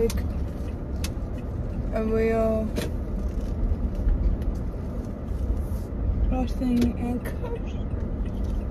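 A car's engine and tyres rumble low and steady from inside the cabin.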